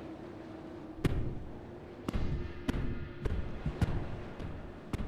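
Heavy footsteps thud on a wooden floor.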